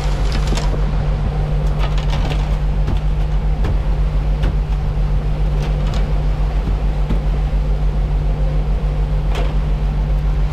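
Churning water rushes and splashes in a boat's wake.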